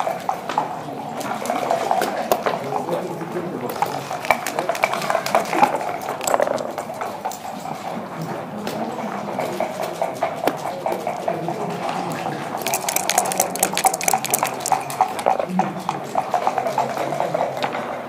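Backgammon checkers click as they are moved on the board.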